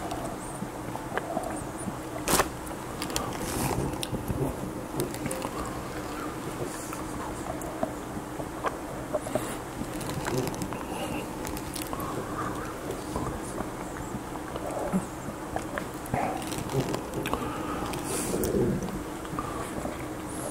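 An older man slurps a drink through a straw.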